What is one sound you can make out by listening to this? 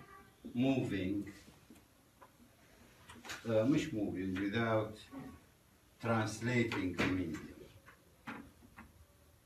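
A man lectures in short phrases, pausing between them.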